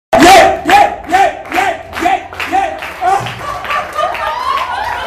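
A crowd chants loudly in a steady rhythm.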